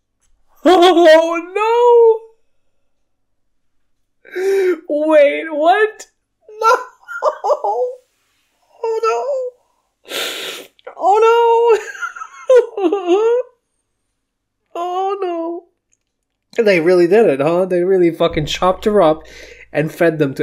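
A man speaks with exasperation close to a microphone, groaning and exclaiming in bursts.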